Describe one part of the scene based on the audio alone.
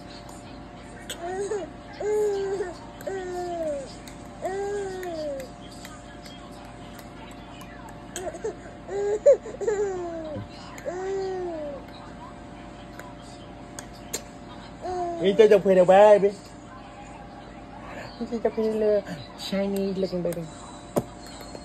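A baby babbles and coos playfully close by.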